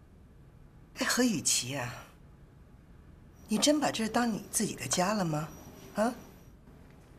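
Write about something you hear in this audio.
A young woman speaks softly and with warmth.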